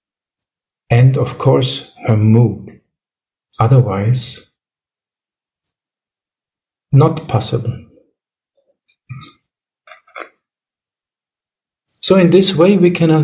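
A man speaks calmly in short phrases over an online call.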